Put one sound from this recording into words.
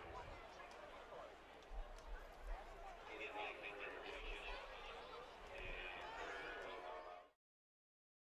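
A crowd murmurs and chatters in an open-air stadium.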